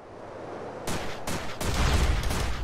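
A gun fires in sharp bursts.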